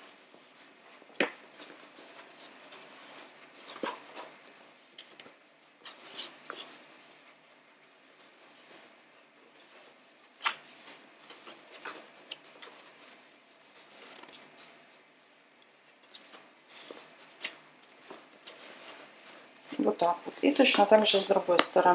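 Fabric rustles and crinkles as hands fold and handle it, up close.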